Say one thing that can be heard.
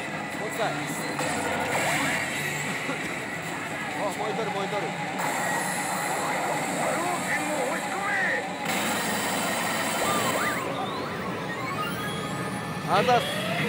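A pachinko machine plays loud electronic music and sound effects.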